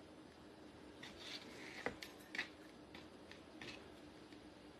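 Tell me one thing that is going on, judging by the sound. A knife taps on a cutting board as soft pieces are chopped.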